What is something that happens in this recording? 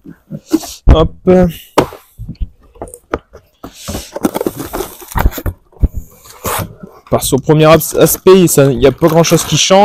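Cardboard flaps rustle and thump as a box is opened.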